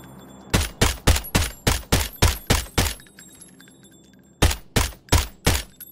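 Rifle shots fire in rapid bursts, with a short pause between them.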